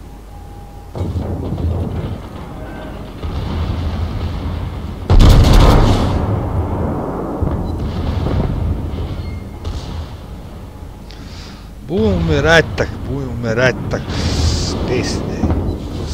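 Ship guns fire with loud booming blasts.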